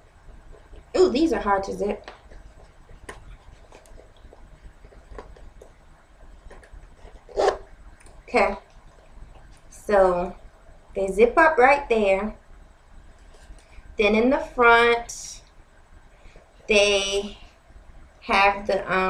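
A woman speaks calmly close by, in short phrases with pauses.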